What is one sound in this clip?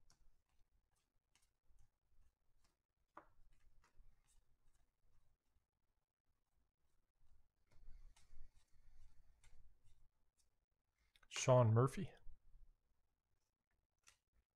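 Trading cards shuffle and flick softly between hands.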